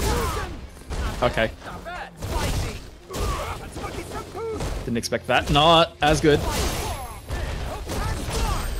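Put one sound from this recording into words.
Punches and kicks land with sharp smacks.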